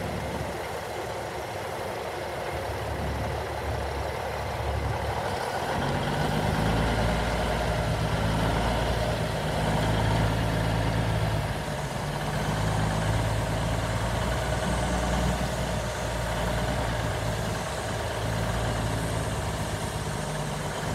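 A big diesel truck engine idles, then rumbles louder as the truck pulls away.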